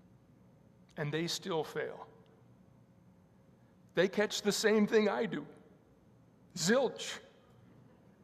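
An elderly man speaks calmly into a microphone in a softly echoing room, pausing between phrases.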